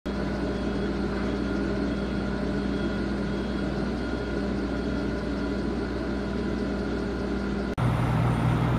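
A forklift engine hums steadily.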